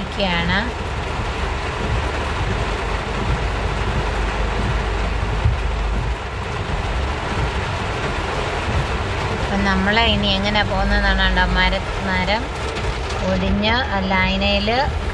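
Heavy rain pours down and drums on a car's windscreen.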